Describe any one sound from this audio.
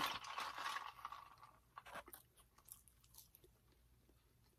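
A young man crunches on food while chewing.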